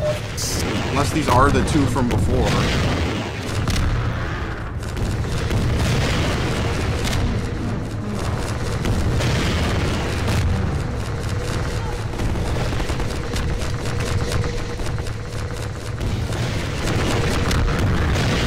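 A rocket launches with a loud whoosh.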